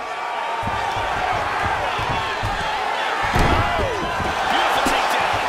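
A crowd cheers and murmurs in a large arena.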